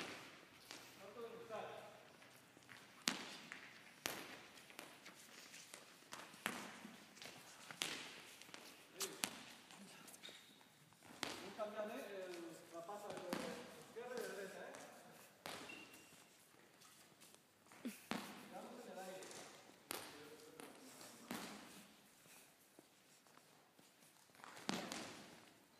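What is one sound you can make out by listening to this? A volleyball is struck with sharp slaps and thuds in a large echoing hall.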